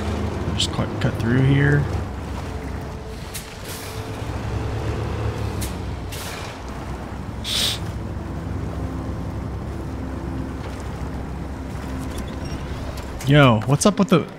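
A heavy truck engine rumbles steadily.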